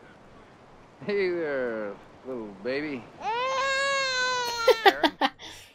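A young woman exclaims loudly in surprise, close to a microphone.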